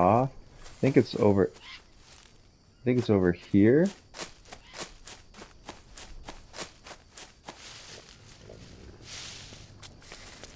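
Footsteps crunch over dry leaves.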